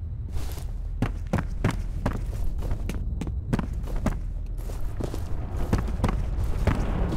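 Footsteps thud steadily on wooden floorboards.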